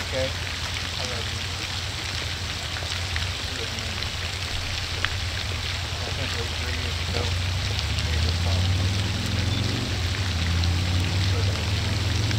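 A fountain splashes steadily in the background.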